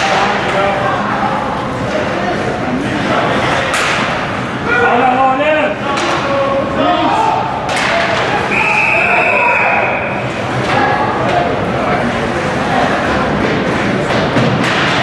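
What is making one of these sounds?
A crowd of spectators chatters and cheers in an echoing rink.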